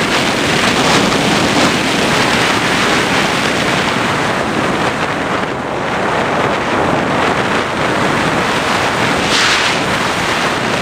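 A small propeller motor whirs steadily.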